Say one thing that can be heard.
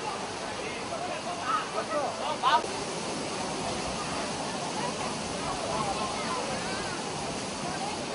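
Water splashes as people bathe.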